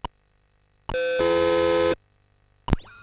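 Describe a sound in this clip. A computer gives a short electronic beep.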